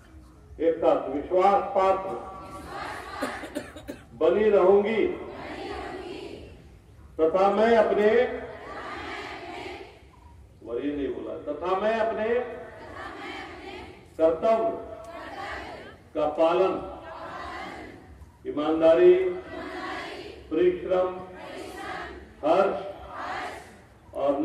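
A group of young men chant loudly in unison in short bursts outdoors.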